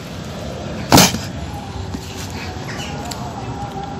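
Cardboard rustles and tears as a box is opened.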